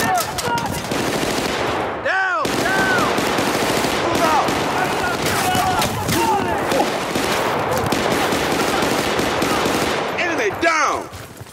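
A rifle fires in rapid, loud bursts close by.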